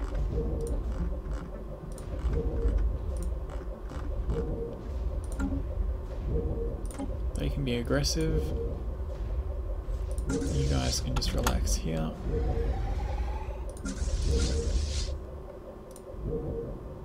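Soft game interface clicks sound now and then.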